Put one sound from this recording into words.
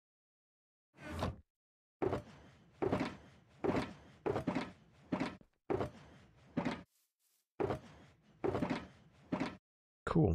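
Game blocks are placed with short, repeated thuds.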